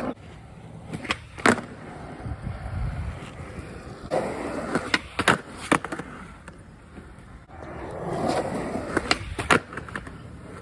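A skateboard clacks sharply as it pops and lands.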